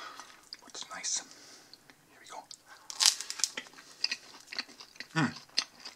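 A crusty piece of bread crackles as it scoops through a soft spread.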